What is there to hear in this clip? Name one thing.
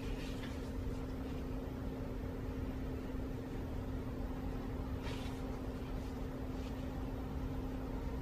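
Adhesive tape crackles as it is peeled off a roll.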